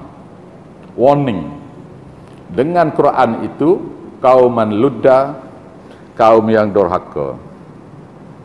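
An elderly man speaks calmly and slowly into a microphone.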